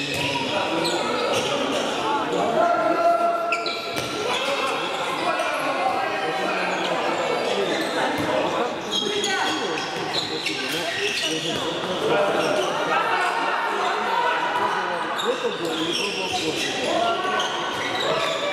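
Men shout to each other in a large echoing hall.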